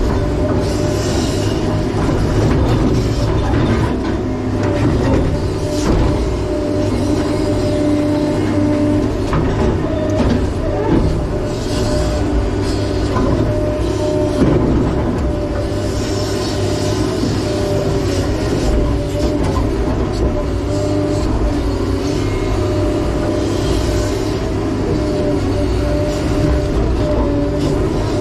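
A heavy diesel engine rumbles and drones steadily up close, rising and falling as it works.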